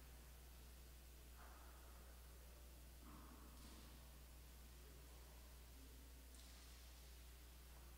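Footsteps walk softly along a carpeted aisle in a large echoing hall.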